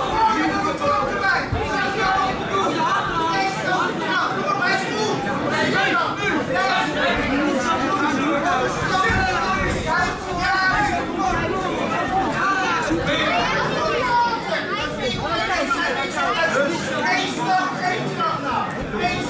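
A crowd of men and women shout and cheer loudly in an echoing hall.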